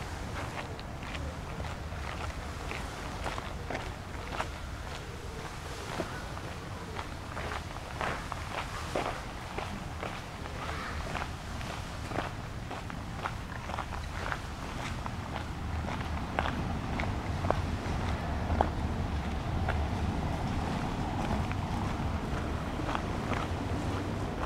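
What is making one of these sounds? Wind rustles through tree leaves outdoors.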